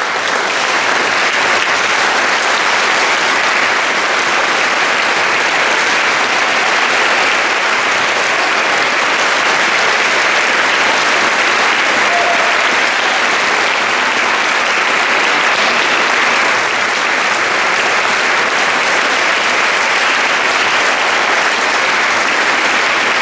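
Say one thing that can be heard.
A large audience applauds steadily in an echoing hall.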